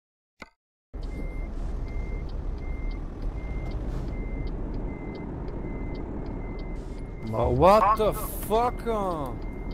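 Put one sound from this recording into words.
A truck engine rumbles steadily at idle.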